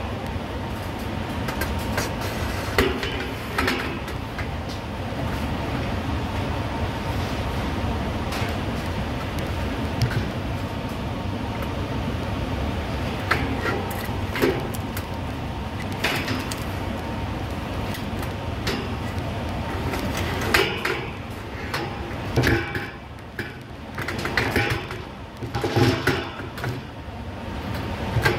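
A steady machine hum fills the space.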